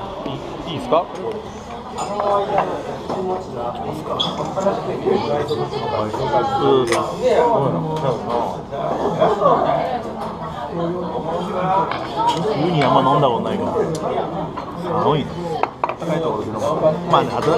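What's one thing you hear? A man talks casually up close.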